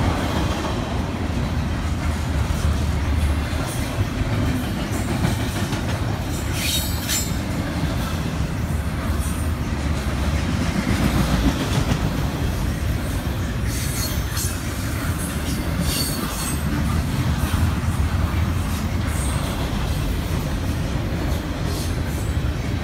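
A double-stack intermodal freight train rumbles past close by.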